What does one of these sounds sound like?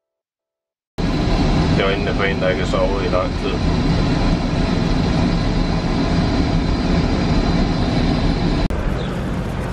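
A young man speaks close up.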